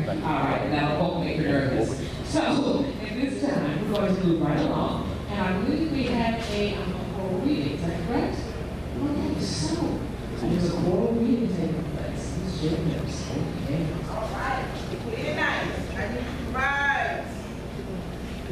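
A woman speaks calmly into a microphone over a loudspeaker in an echoing hall.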